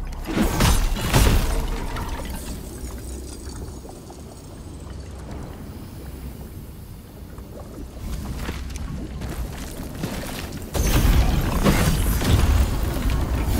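Sword blows land with sharp, heavy impacts.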